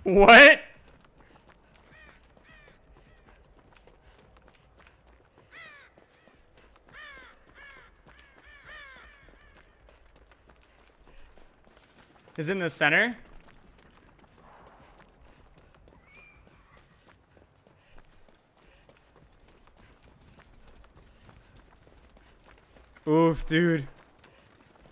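A man speaks in short bursts close to a microphone.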